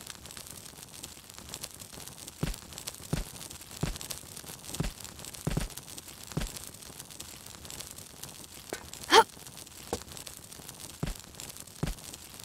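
Hands knock and scrape against a wall while climbing.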